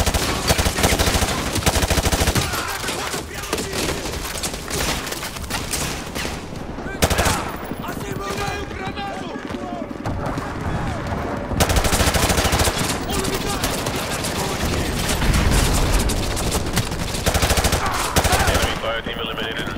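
Rifles fire in rapid, loud bursts.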